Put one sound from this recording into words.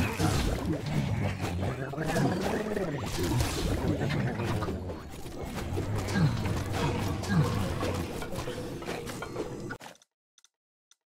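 Magic blasts and explosions crackle in a busy fight.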